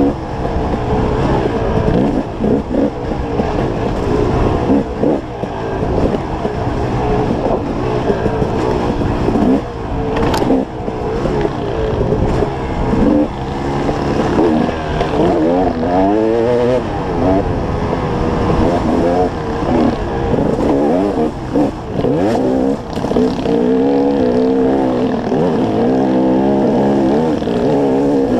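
Tyres crunch and skid over loose dirt and stones.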